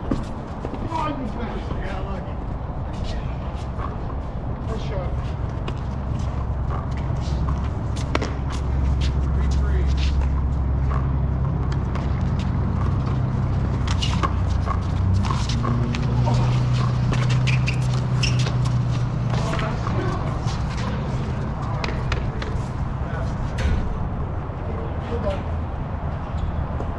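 A ball smacks sharply against concrete walls, echoing around an open court.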